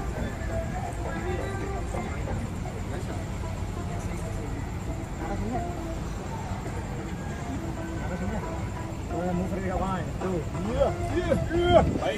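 Several young men talk with animation outdoors, a little distant.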